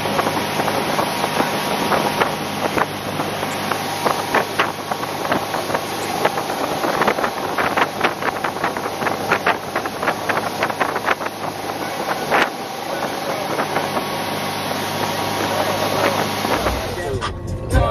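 Water churns and rushes in a motorboat's wake, outdoors in wind.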